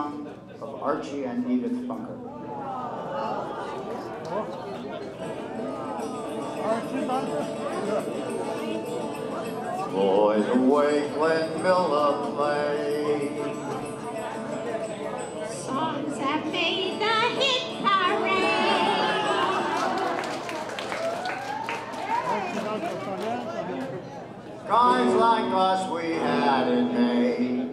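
An elderly man sings into a microphone.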